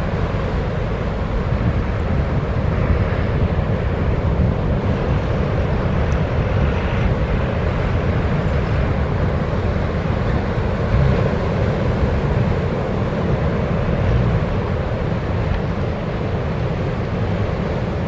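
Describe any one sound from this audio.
Waves break and wash in the surf.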